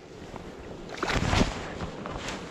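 Water splashes as a fish is released.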